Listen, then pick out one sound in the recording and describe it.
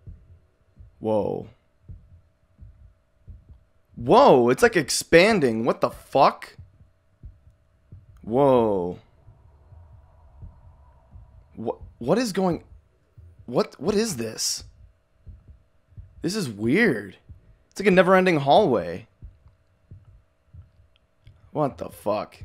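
A young man talks calmly and close into a microphone, in short bursts.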